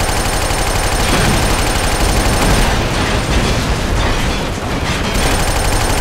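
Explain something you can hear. Bullets strike and explode with loud cracks.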